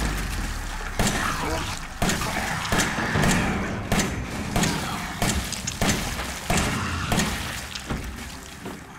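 A pistol fires repeated loud shots that echo briefly.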